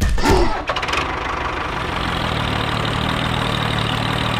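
A small tractor engine rumbles steadily.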